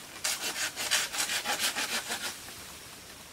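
A saw rasps rhythmically through bamboo.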